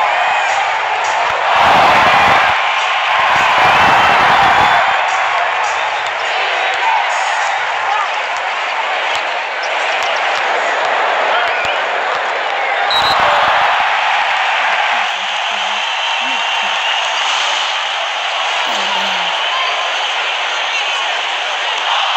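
A crowd roars and cheers steadily.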